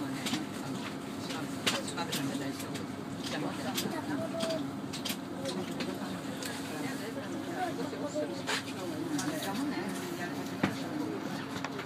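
Train wheels click and clatter over the rails.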